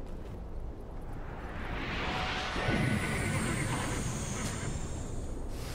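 A fiery blast whooshes and roars, growing louder.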